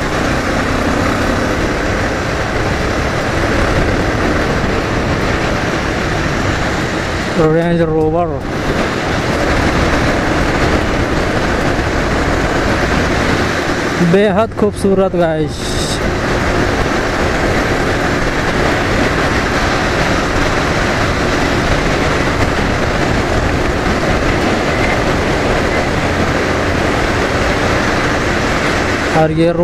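A motorcycle engine hums steadily while riding at speed.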